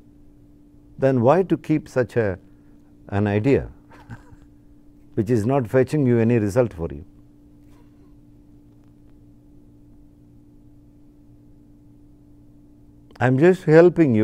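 An elderly man speaks calmly and close to a microphone, in short phrases with pauses.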